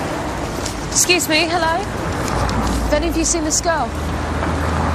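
A young woman talks outdoors.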